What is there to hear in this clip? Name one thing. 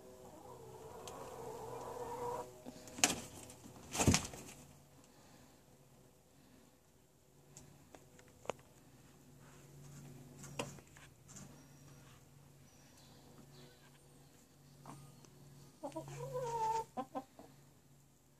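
A hen clucks and croons close by.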